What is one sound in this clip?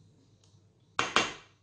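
A spatula knocks loudly against a metal bowl.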